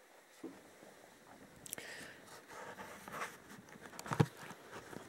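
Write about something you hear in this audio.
Clothing rustles close by.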